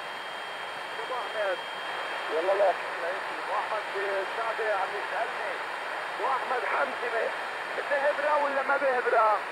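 Garbled single-sideband voices come through a portable shortwave radio.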